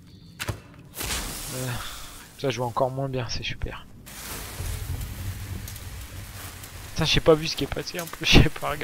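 A flare hisses and sputters as it burns.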